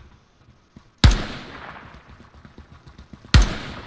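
A rifle fires loud single shots that echo and fade.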